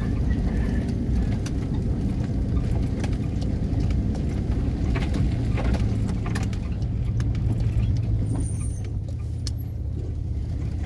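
A vehicle engine rumbles low and steady.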